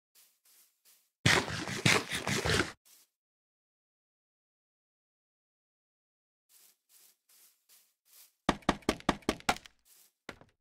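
Footsteps tap on grass and wood.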